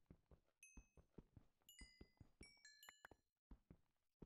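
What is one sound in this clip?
Short bright chimes ring out as items are picked up.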